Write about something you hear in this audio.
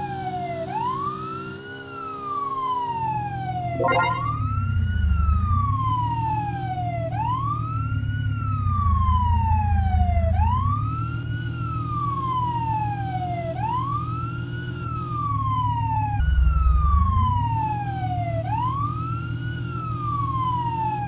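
A vehicle engine hums and rises and falls.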